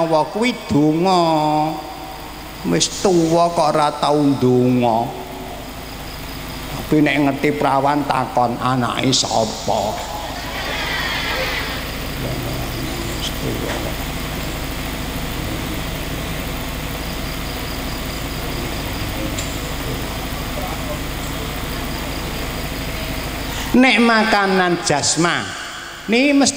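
An elderly man speaks with animation through a microphone and loudspeakers, in bursts with long pauses.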